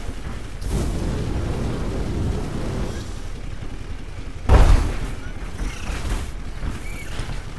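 A heavy robot walker stomps along with thudding footsteps.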